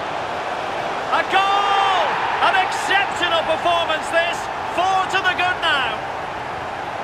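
A stadium crowd cheers loudly after a goal.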